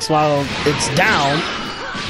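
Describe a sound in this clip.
A loud blast erupts in a burst of rushing noise.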